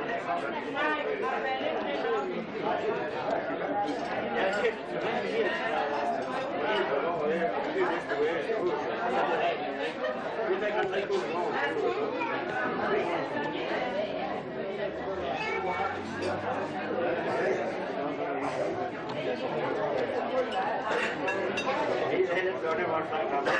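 A crowd of men and women chatter and talk over one another indoors.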